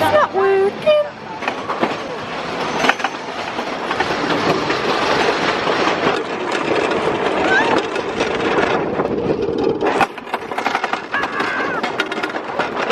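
A roller coaster rumbles and rattles along its track.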